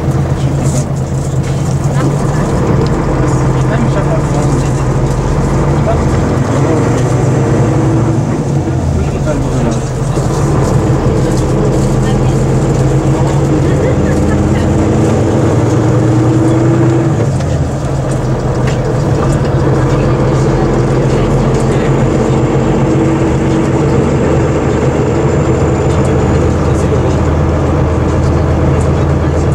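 The bus rattles and creaks as it drives.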